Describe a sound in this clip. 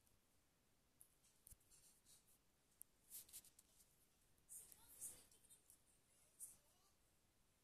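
Clothing rustles and brushes very close by.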